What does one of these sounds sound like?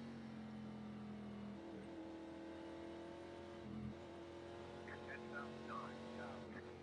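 A race car engine drones steadily, shifting pitch.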